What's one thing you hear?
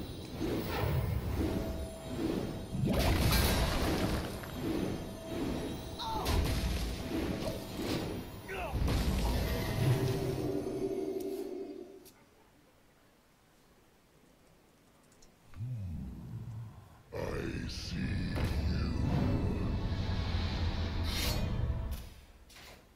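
Game sound effects chime and crash.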